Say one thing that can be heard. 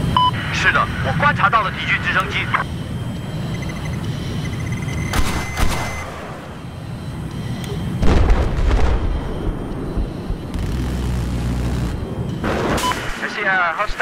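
A jet engine roars in flight.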